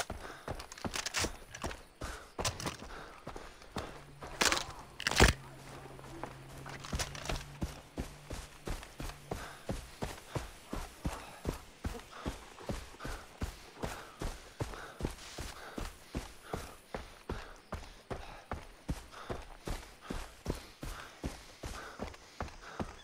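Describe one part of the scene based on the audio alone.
Footsteps thud on a dirt path at a quick, steady pace.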